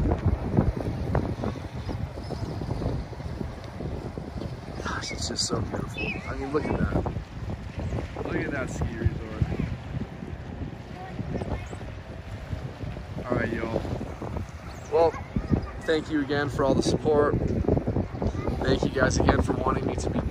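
Small waves lap against a rocky shore.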